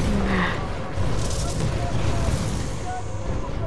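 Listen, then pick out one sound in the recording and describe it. A heavy gun fires rapidly.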